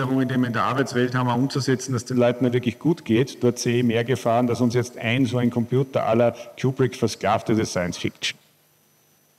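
A man speaks calmly into a microphone, heard over loudspeakers.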